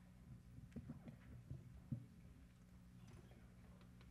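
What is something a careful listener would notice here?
A woman speaks softly into a microphone in a large room.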